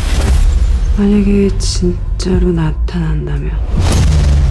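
A woman asks a question in a low, tense voice.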